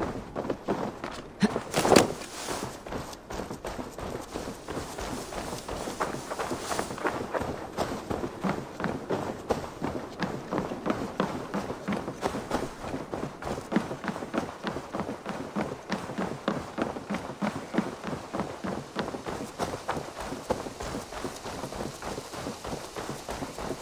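Footsteps crunch through grass and thud on wooden planks at a steady walking pace.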